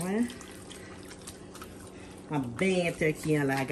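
Hands rub wet raw chicken with soft squelching.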